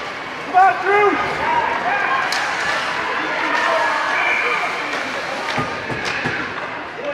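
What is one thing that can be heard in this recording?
Hockey sticks clack against the puck.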